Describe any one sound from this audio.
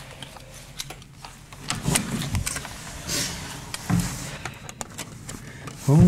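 A door opens and bangs shut.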